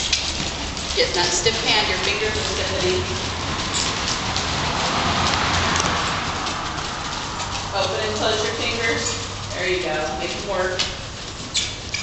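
A woman talks nearby in a calm voice.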